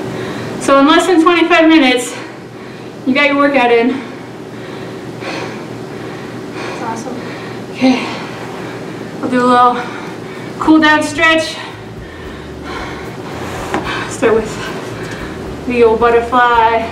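A woman talks calmly to the listener in a room with a slight echo.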